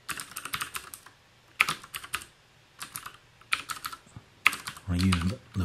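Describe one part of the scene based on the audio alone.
Keys clatter in quick bursts of typing.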